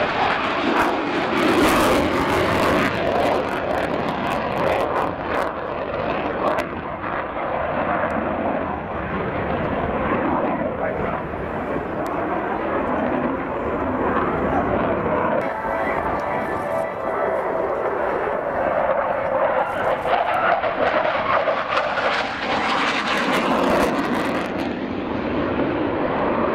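A jet engine roars loudly overhead, rising and falling as the plane banks and passes.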